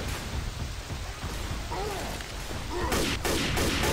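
A large monster roars and growls.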